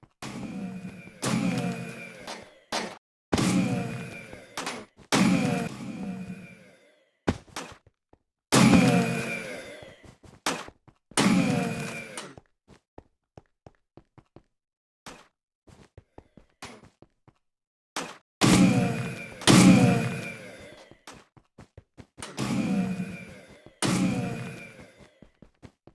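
A laser gun fires again and again, each shot a sharp zap with a ringing, falling whine.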